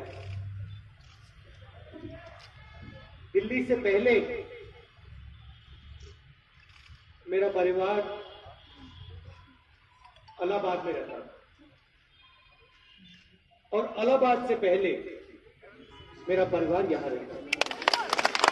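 A man speaks forcefully into a microphone over loudspeakers outdoors, in short phrases with pauses.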